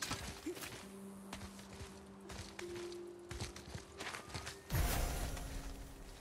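Hands and boots scrape and thud on rock during a climb.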